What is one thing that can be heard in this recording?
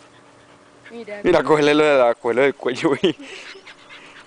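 A puppy yelps and whines loudly.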